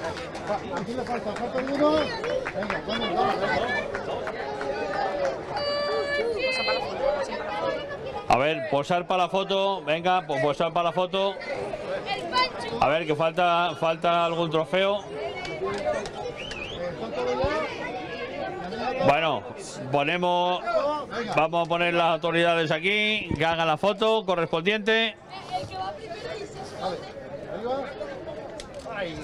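A crowd of people chatters and cheers outdoors.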